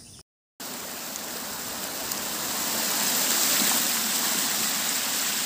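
Water rushes and splashes steadily over rocks.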